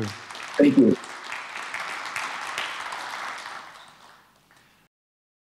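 An audience applauds in a large hall, then fades.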